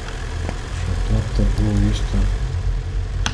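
A man speaks briefly and quietly through a microphone.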